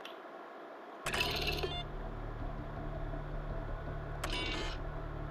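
A computer terminal hums steadily.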